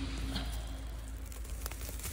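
A hand rustles through dry grass and pine needles.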